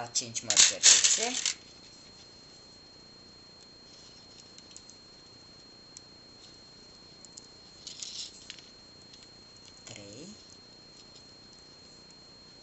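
Small beads click softly against each other as they are threaded.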